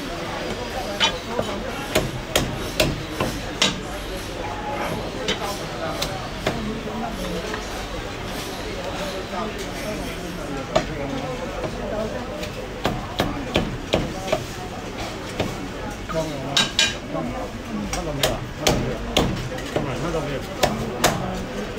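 A cleaver chops through roast meat on a wooden block with sharp thuds.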